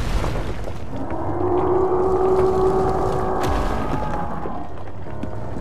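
A huge monster lets out a long, deep roar.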